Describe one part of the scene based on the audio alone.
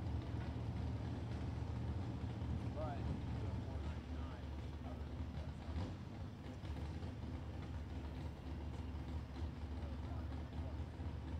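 Engines idle in the distance with a low, steady rumble.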